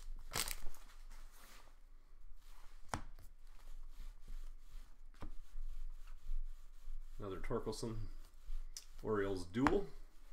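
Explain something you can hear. Trading cards rustle as they are shuffled.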